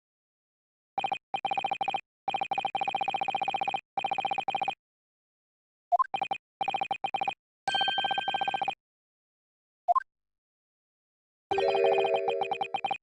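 Quick electronic blips chatter in bursts as text types out.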